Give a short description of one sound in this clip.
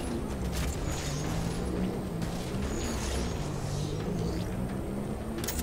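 A hovering vehicle's engine hums steadily.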